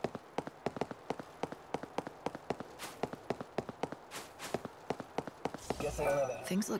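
Quick footsteps run over dry ground.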